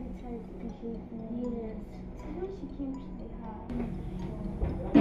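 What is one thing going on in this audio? Two young girls talk quietly together nearby.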